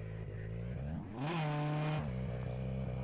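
A rally car engine revs up sharply and drops back.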